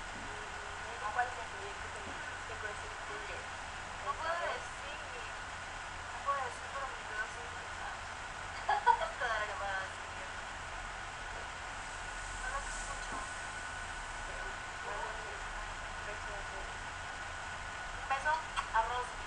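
A young woman talks casually in short bursts, heard through a webcam microphone.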